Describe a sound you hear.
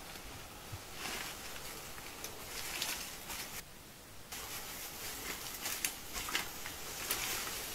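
Leafy foliage rustles and crackles as someone moves close by.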